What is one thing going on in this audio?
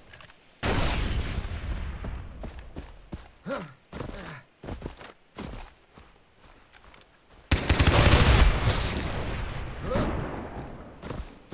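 A rifle fires loud shots that boom and echo away.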